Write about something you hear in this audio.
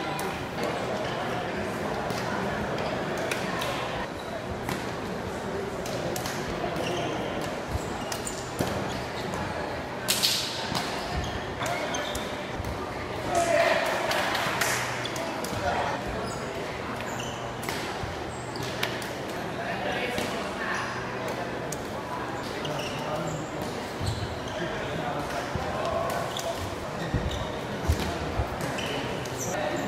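A crowd of young spectators chatters in the background.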